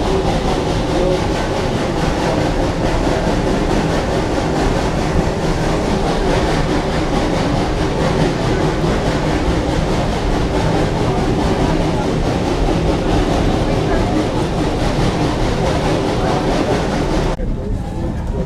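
A train rumbles and rattles steadily along its track.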